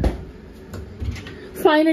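A cabinet door clicks.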